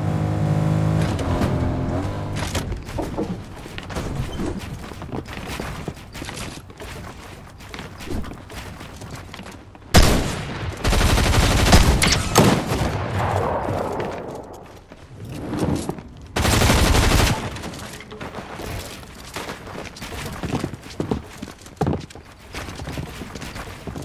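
Wooden panels clack into place in quick bursts.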